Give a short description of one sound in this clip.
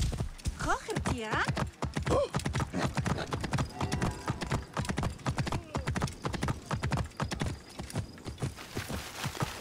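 A horse's hooves clatter in a quick gallop on stone.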